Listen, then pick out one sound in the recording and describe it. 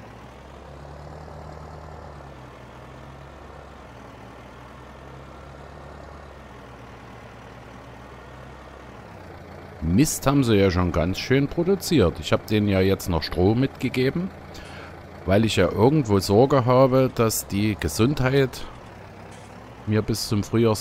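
A tractor engine rumbles steadily at a low idle.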